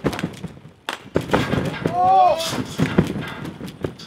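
A scooter clatters onto a trampoline mat.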